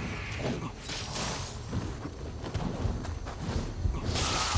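A sword swings and strikes with sharp metallic clashes.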